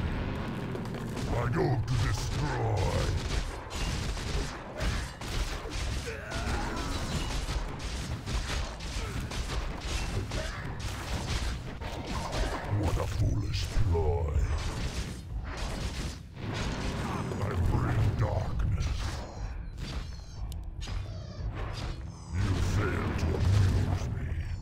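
Game weapons clash and spells burst in a battle.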